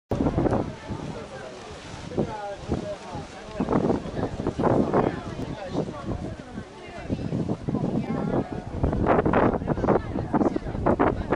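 Several adult men and women chat casually nearby outdoors.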